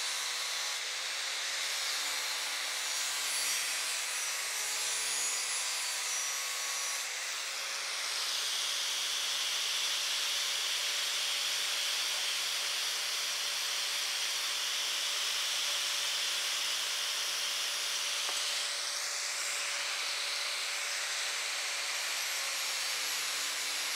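An angle grinder whines loudly as it grinds metal.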